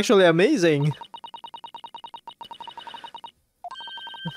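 Rapid, even blips chirp in quick succession, like text being typed out in a game.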